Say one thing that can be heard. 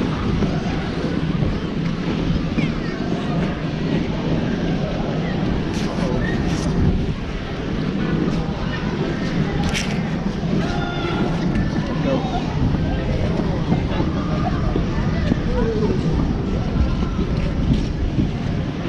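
Ice skates scrape and hiss on the ice up close.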